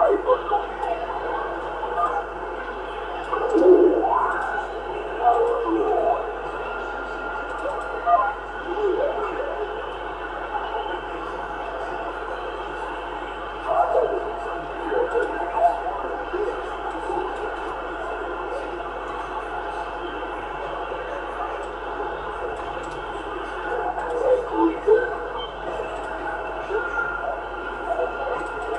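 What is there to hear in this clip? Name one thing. A radio receiver hisses with steady static.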